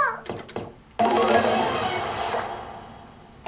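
A slot machine plays a burst of bright sound that slowly fades.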